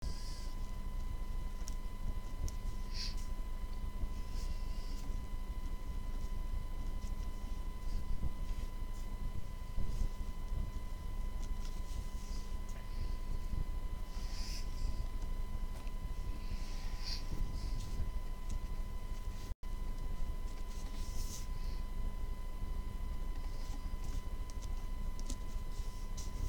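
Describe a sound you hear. A pen scratches and taps on paper in short bursts.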